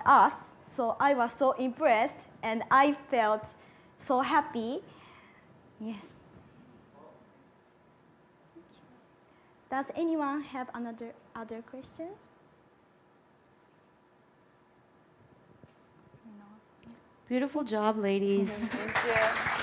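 Young women speak to an audience.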